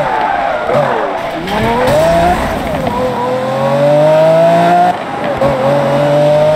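A sports car engine roars and revs up through the gears.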